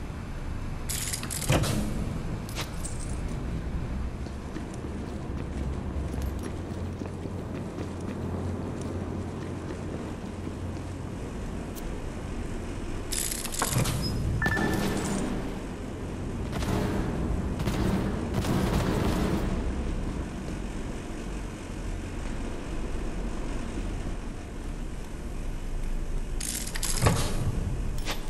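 A metal safe door unlatches and swings open with a clank.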